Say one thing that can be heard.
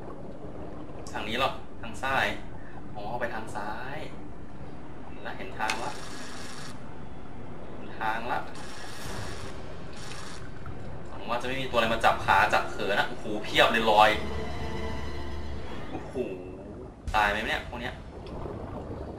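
A young man talks calmly close to a microphone.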